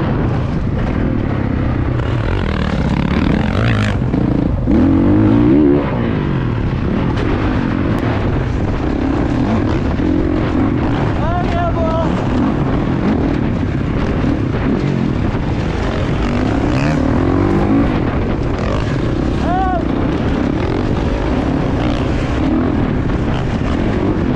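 Another dirt bike engine buzzes ahead.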